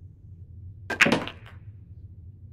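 A pool cue strikes the cue ball with a sharp click.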